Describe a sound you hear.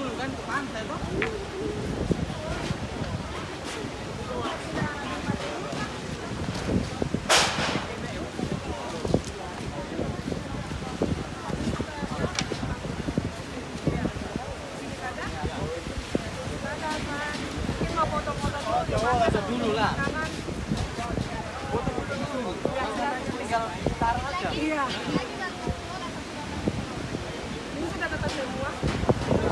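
Waves break on a beach nearby.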